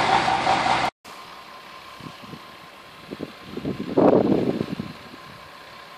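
A distant off-road truck engine drones outdoors.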